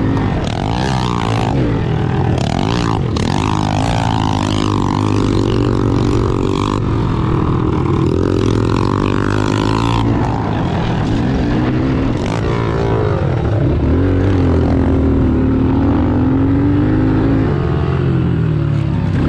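A dirt bike engine revs loudly close by, rising and falling in pitch.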